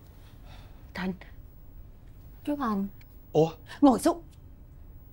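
A woman speaks sharply and with agitation.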